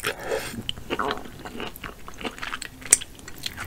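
A woman licks and sucks sauce from her fingers close to a microphone.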